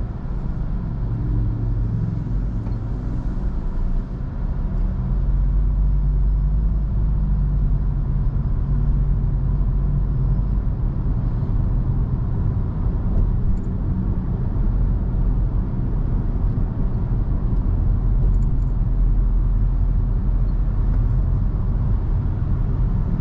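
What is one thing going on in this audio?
A car's engine hums steadily from inside the car.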